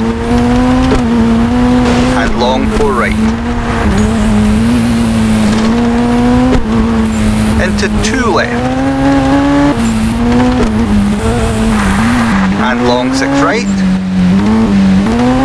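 A rally car engine roars and revs, dropping in pitch with each gear change.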